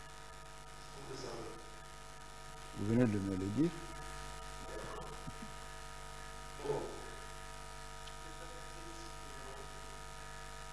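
A man speaks into a microphone in a large room, in short bursts with pauses.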